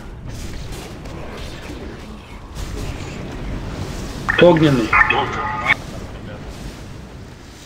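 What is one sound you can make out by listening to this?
Spell effects crackle and whoosh in a game battle.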